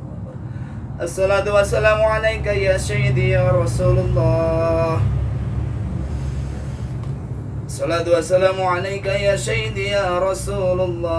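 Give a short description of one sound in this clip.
A man chants a prayer in a melodic voice close by.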